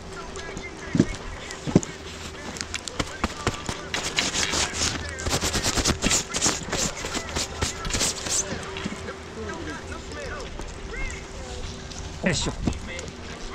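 Skis knock and clatter against each other.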